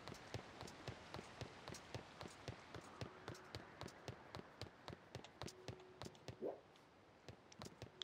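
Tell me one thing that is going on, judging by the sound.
Footsteps knock rhythmically on wooden boards.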